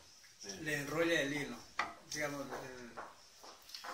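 A wooden block is set down with a knock.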